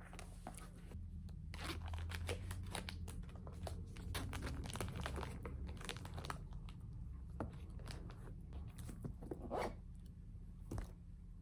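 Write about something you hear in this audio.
Fabric and small items rustle as a bag is packed.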